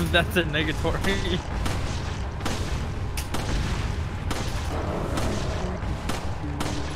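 Shotgun blasts boom one after another.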